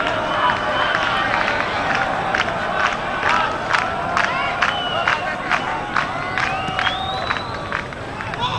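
Spectators clap their hands.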